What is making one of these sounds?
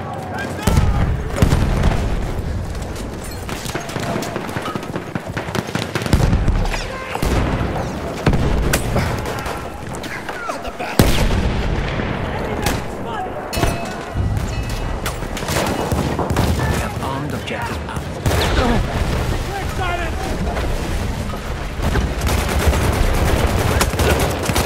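Gunfire cracks and booms repeatedly.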